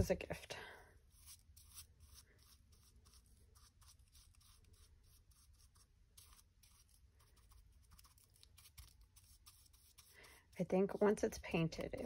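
A stiff brush dabs and scrapes on rough fabric.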